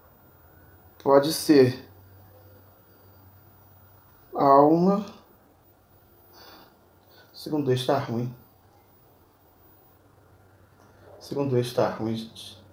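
A man speaks close by in short bursts.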